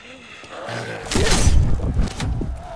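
A blade strikes flesh with heavy, wet thuds.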